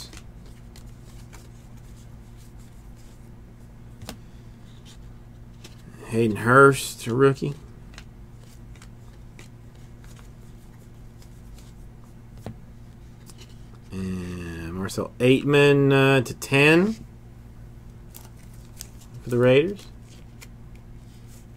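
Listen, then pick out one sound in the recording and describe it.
Trading cards softly flick and rustle as they are shuffled by hand.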